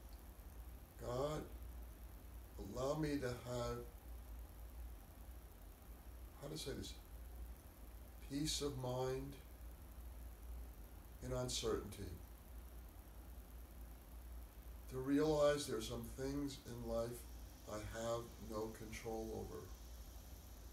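An elderly man speaks calmly and slowly close to a microphone, with long pauses.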